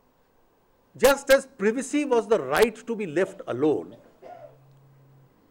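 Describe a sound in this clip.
A middle-aged man speaks with animation into microphones.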